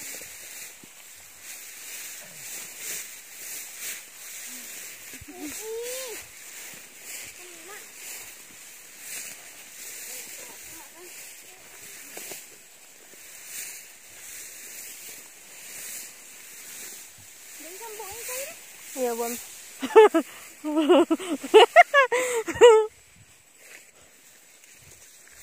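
Dry tall grass rustles and swishes as someone walks through it.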